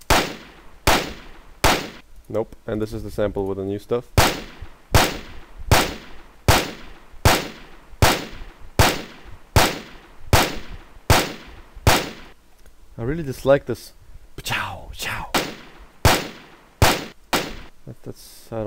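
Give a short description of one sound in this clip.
Recorded gunshots play back one after another, each with a sharp crack and a ringing tail.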